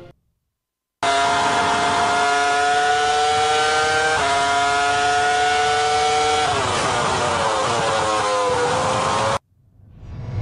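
A racing car engine whines at high revs, shifts gear and then slows down.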